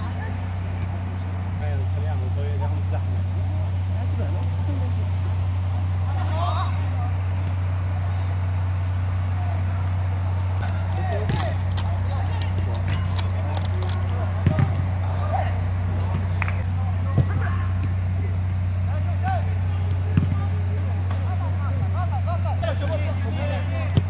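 Young men shout to each other across an outdoor pitch at a distance.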